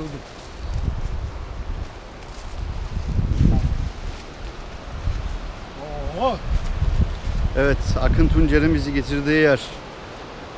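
Footsteps crunch through leafy undergrowth.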